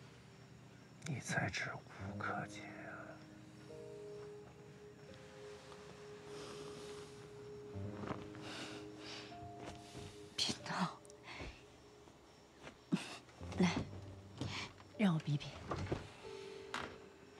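A man speaks softly and close by.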